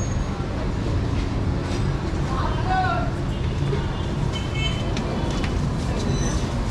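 Motor tricycle engines rumble steadily nearby.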